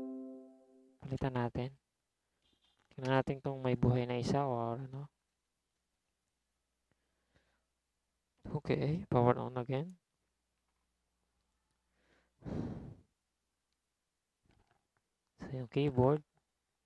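A man talks calmly close to a microphone, in short bursts with pauses.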